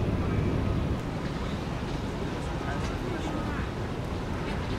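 A heavy truck engine rumbles in the distance.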